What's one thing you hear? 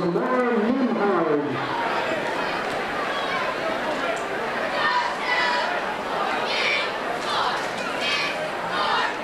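A crowd in the stands cheers and shouts.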